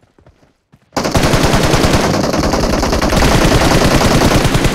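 A buggy engine roars loudly nearby.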